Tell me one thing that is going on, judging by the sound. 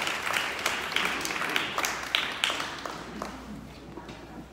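A small crowd claps outdoors, then the clapping dies away.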